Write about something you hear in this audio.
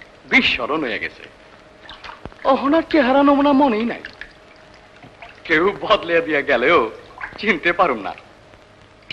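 A young man speaks loudly and with animation.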